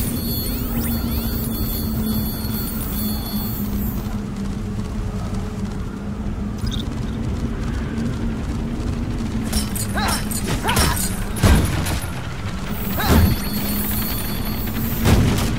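Magical blasts whoosh and sparkle.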